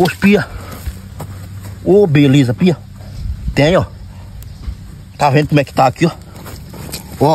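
Hands scrape and dig in loose soil.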